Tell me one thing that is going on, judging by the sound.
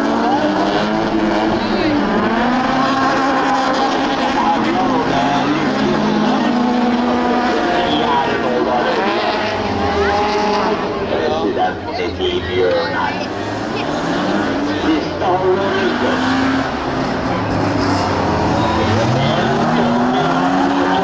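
Racing car engines roar and rev loudly.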